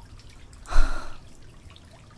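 A young woman gasps sharply nearby.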